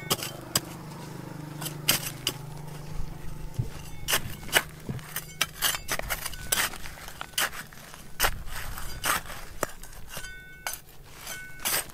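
Small stones clatter and rattle as soil is moved.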